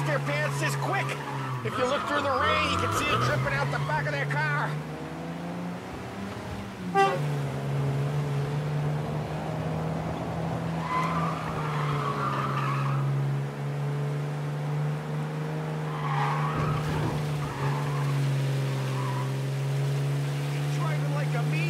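Tyres splash through water on a wet road.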